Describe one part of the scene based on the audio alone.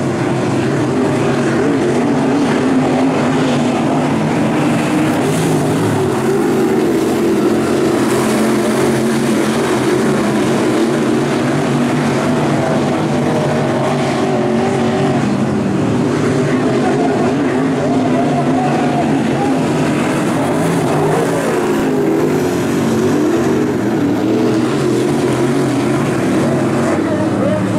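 Race car engines rise and fall in pitch as the cars speed up out of the turns.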